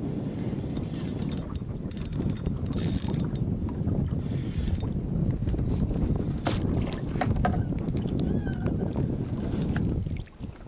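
Water laps against the side of a boat.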